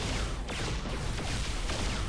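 A laser beam fires with a loud, steady roar.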